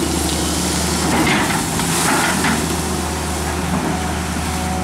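Water splashes and churns as an excavator bucket plunges into a river.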